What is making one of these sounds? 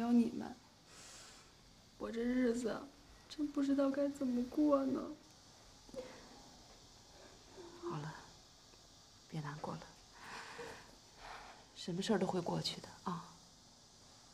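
A young woman speaks softly, close by.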